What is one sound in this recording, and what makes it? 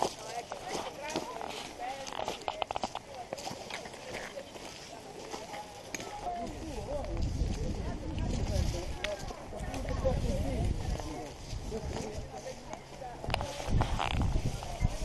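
Footsteps crunch through dry leaves on a trail.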